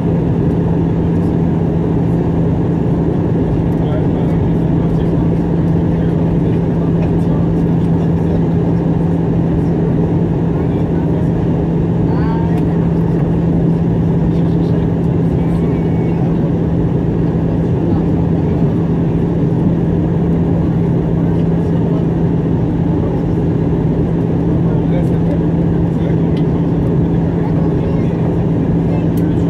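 A jet engine roars steadily and loudly close by, with a deep, constant drone.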